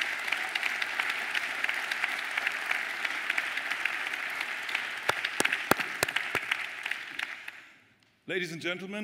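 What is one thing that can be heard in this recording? A large audience applauds and the applause fades out.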